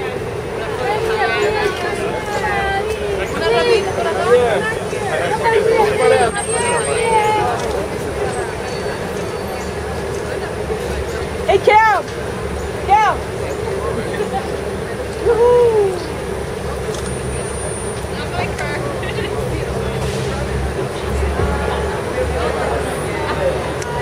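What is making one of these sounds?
A crowd of fans chatters and calls out excitedly outdoors.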